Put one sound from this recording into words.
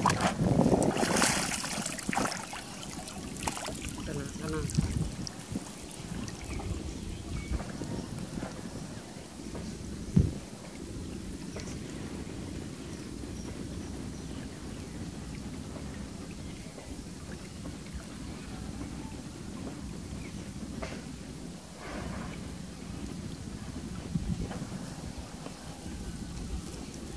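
Water splashes as a net is dragged through shallow water.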